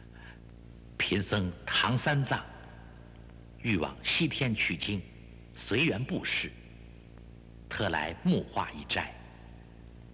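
A young man speaks calmly and earnestly, close by.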